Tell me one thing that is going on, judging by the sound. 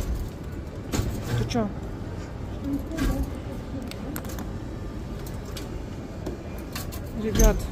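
An arcade claw machine plays bright electronic jingles.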